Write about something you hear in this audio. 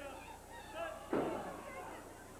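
A blow lands with a dull thud on a wrestling ring.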